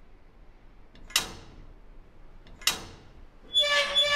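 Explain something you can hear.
A metal bolt on an iron gate clanks.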